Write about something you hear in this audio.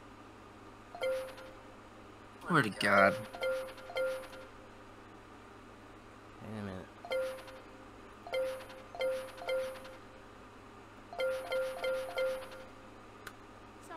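Short electronic chimes ding one after another.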